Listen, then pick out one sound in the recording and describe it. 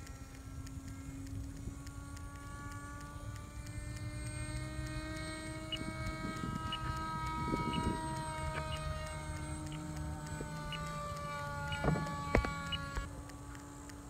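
A small electric motor whines steadily overhead, its pitch drifting slowly.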